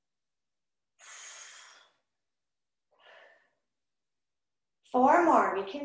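A woman speaks calmly, giving instructions close to a microphone.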